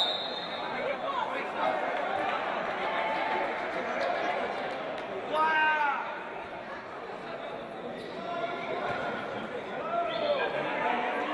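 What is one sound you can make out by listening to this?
Sneakers squeak sharply on a hard floor.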